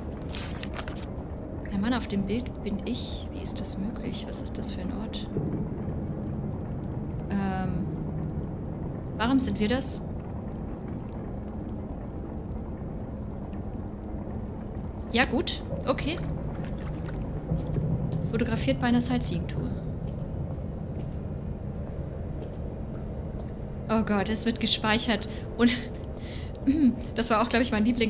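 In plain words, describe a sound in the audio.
A young woman talks into a close microphone with animation.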